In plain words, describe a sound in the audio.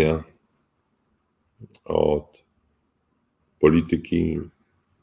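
A middle-aged man speaks calmly in short bursts over an online call.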